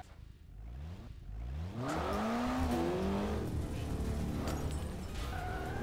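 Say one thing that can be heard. A car engine revs up and roars.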